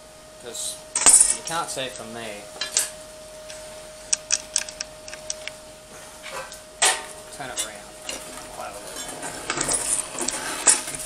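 Metal parts clank and knock against each other.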